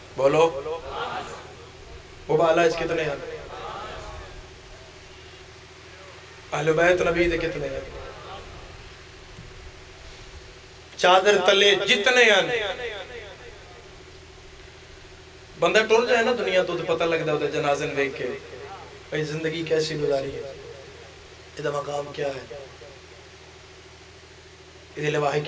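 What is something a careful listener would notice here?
A young man speaks with passion into a microphone over a loudspeaker, in bursts with pauses, his voice echoing.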